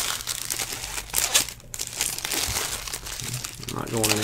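Foil wrapping crinkles as a pack is torn open.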